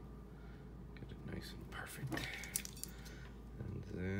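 Small plastic connector parts click and rattle as they are handled.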